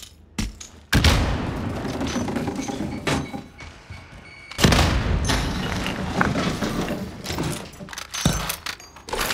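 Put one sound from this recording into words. A sniper rifle fires sharp, loud shots.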